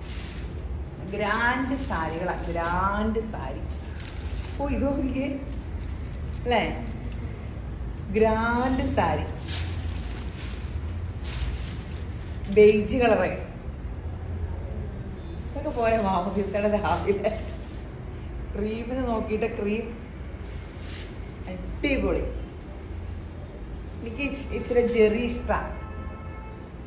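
A woman speaks calmly and cheerfully, close by.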